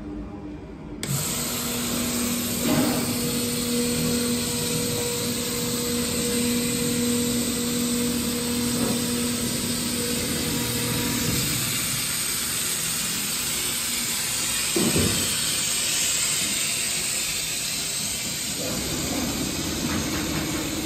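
A cutting machine hums and whirs steadily.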